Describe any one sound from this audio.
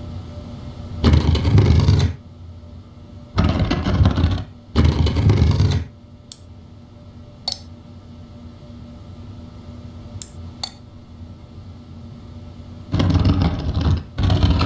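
A heavy stone ring grinds and rumbles as it turns, in several short bursts.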